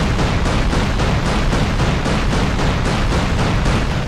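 A rocket explodes with a heavy boom.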